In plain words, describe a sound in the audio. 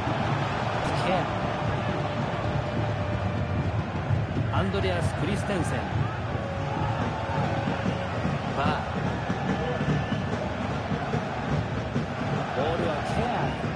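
A football is kicked with sharp thuds now and then.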